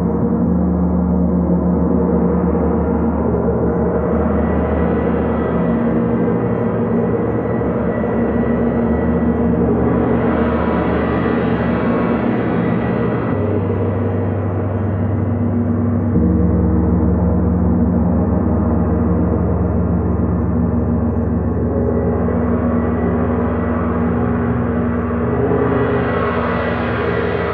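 Large gongs hum and swell with deep, rolling tones.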